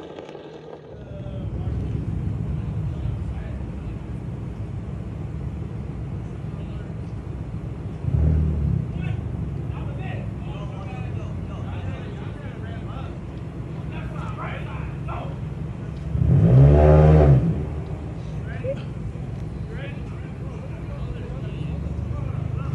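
Car engines idle with a low, steady rumble nearby.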